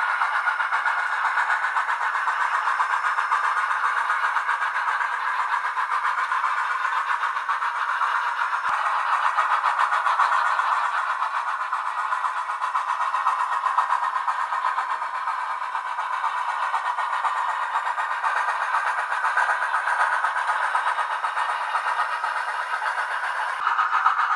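A model train whirs and clicks along its track.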